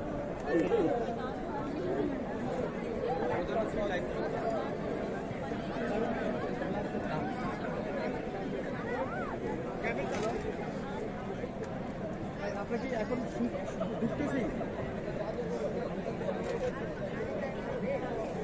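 A crowd chatters outdoors all around.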